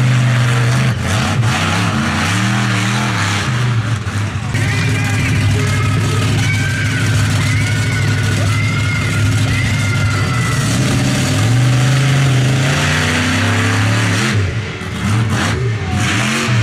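Huge tyres crash down onto crushed cars with a metal crunch.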